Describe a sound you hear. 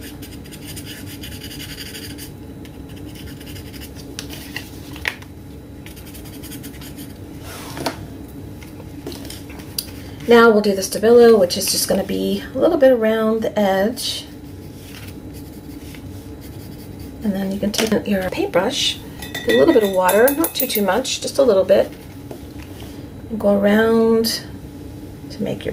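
A pencil scratches lightly on card.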